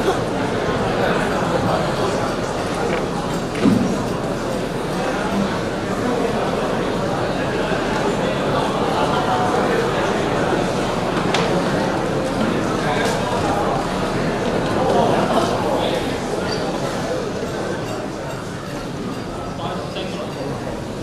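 A large audience chatters in a big echoing hall.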